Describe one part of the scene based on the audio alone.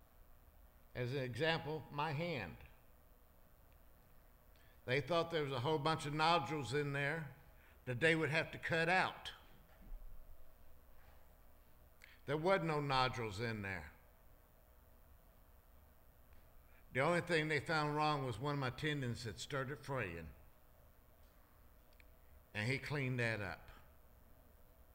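A middle-aged man speaks with emphasis into a microphone, in bursts with pauses, in a reverberant hall.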